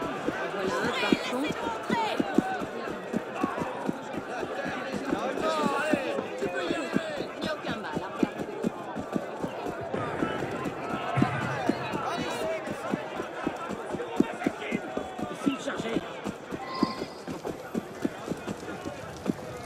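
Quick footsteps run over cobblestones.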